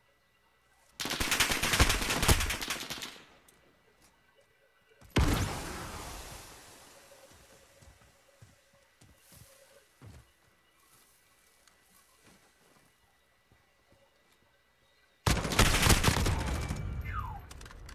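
Automatic rifle fire rattles in bursts.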